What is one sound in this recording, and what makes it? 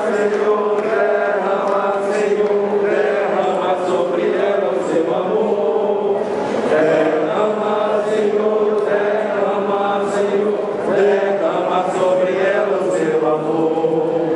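A large crowd sings and prays together in an echoing hall.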